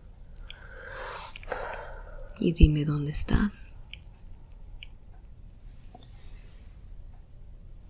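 A woman breathes heavily in her sleep.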